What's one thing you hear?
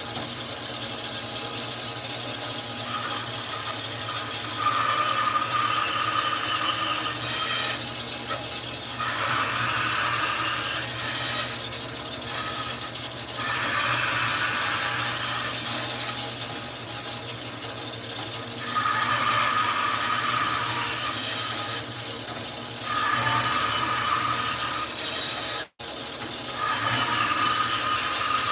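A band saw motor hums steadily.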